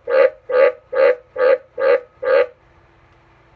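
A frog croaks loudly in a quick, even series of calls.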